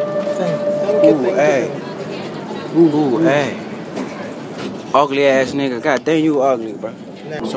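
A young man speaks casually, close by.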